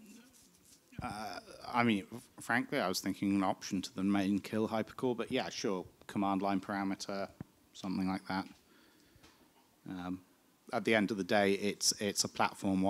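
A man speaks calmly and at length, close by.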